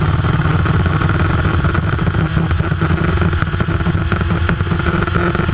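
An open-wheel race car engine roars at speed, heard from the cockpit.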